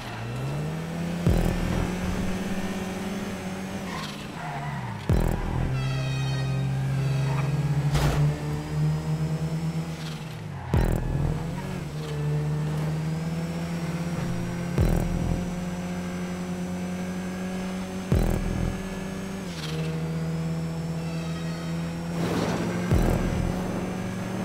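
A car engine roars steadily, revving up and dropping with each gear change.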